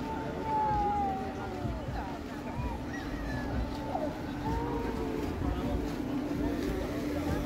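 A crowd of adults and children chatter and call out nearby outdoors.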